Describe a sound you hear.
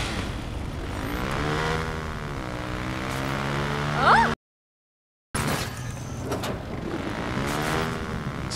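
A motorcycle engine revs and roars.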